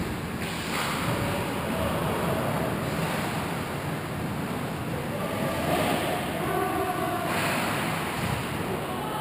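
Hockey players shout in a large echoing rink.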